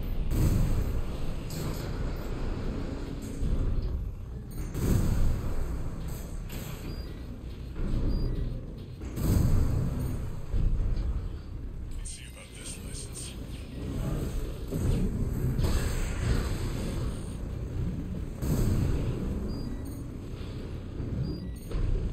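Mechanical engines roar and thrust steadily.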